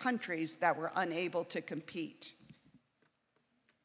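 A woman speaks calmly into a microphone, then falls silent.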